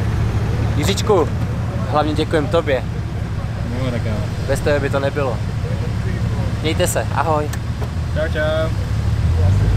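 A young man talks in a car.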